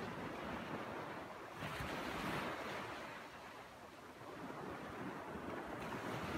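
Small waves wash onto the shore and break.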